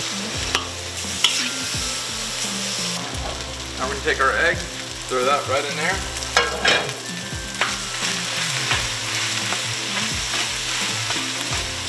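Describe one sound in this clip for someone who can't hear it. Food sizzles and crackles in a hot pan.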